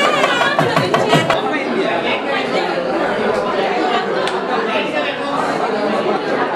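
A crowd of men and women chatters all around.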